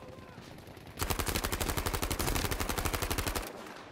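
A rifle fires in a rapid, steady burst of shots.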